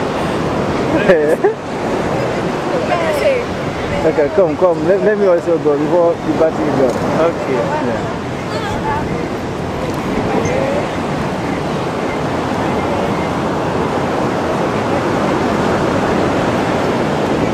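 Young women chatter and laugh close by.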